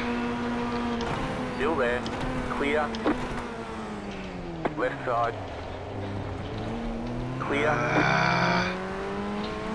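Other racing car engines roar past close by.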